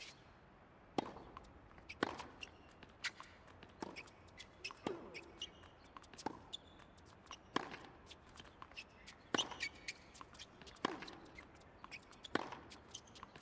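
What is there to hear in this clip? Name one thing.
A tennis ball is struck back and forth with rackets at a steady rhythm.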